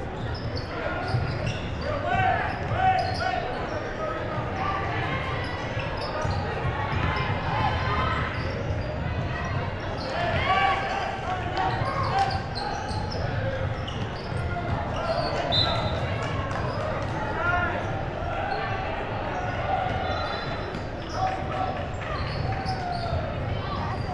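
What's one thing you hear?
Sneakers squeak sharply on the hardwood floor.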